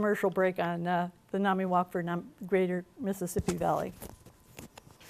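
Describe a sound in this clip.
A woman speaks through a microphone to a room, calmly and clearly.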